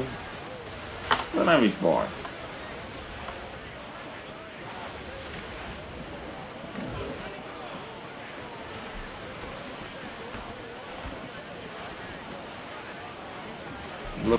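Wind blows through a ship's rigging and sails.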